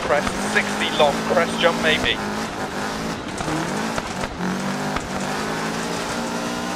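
A rally car engine roars and revs, its pitch dropping and climbing with gear changes.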